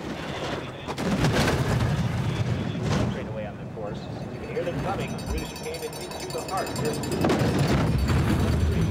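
A bobsled rushes past with a loud whoosh.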